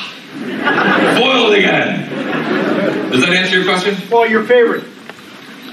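A middle-aged man speaks with animation into a microphone, heard through loudspeakers in a large room.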